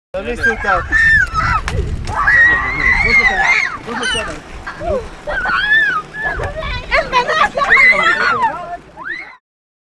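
A young woman screams and cries out frantically close by.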